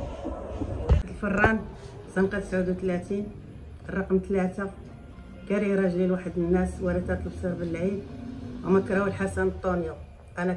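An elderly woman speaks earnestly into a microphone close by.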